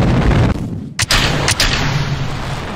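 A sharp bang rings out as a rocket stage breaks away.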